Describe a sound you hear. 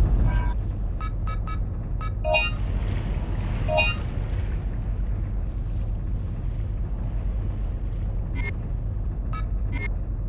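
Short electronic menu beeps sound as selections are made.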